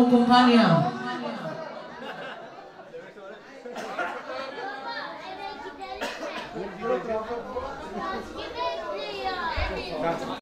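People chatter quietly in the background.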